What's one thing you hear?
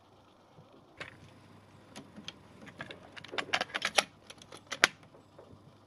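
A plastic cassette mechanism clicks and rattles.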